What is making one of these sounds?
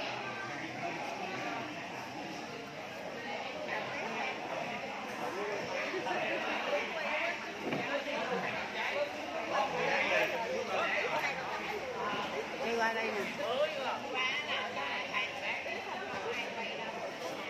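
A middle-aged woman talks cheerfully close by.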